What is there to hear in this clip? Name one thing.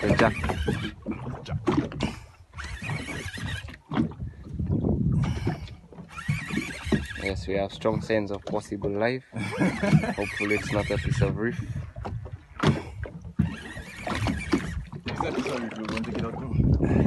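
Small waves slap against the side of a boat.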